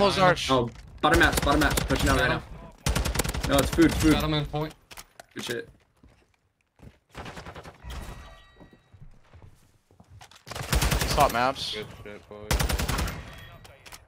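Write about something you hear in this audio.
Rapid gunfire bursts from a rifle.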